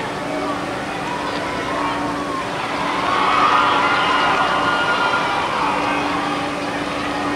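Young men shout to each other across an open outdoor field in the distance.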